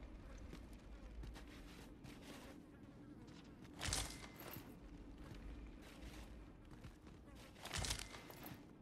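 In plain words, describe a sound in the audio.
Hands and feet scrape and scuffle against rough rock during climbing.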